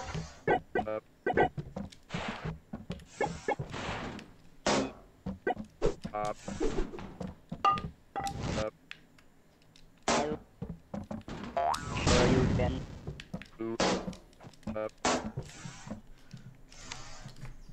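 Cartoon game sound effects pop and clatter in quick bursts.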